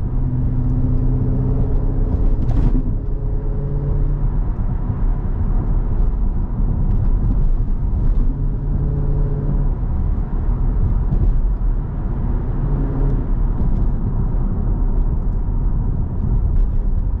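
A car engine rumbles and revs as the car drives along a road.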